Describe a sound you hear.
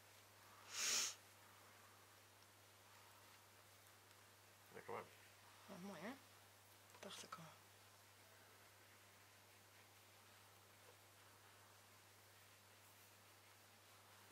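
A bandage rustles as it is wrapped around an arm.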